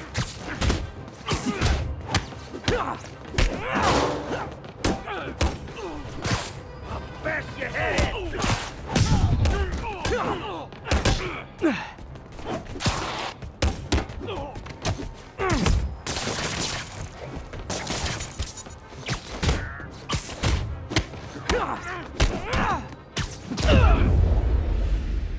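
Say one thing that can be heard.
Punches and kicks land with sharp, heavy thuds in a fight.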